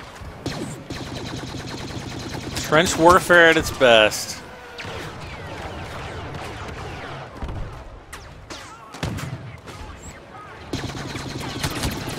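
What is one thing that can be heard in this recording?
A blaster rifle fires rapid laser shots.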